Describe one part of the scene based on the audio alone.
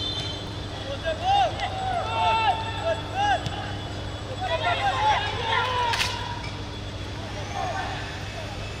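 Men shout to each other across an open pitch.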